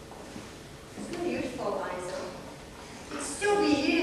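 A second woman answers calmly in a hall.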